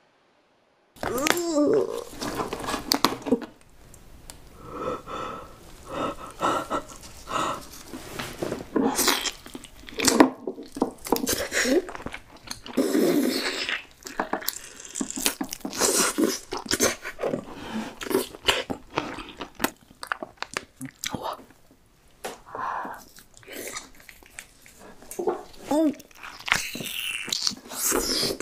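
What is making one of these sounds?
Lobster shell cracks and crunches.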